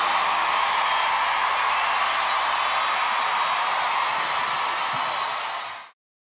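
A large crowd cheers loudly in a big echoing hall.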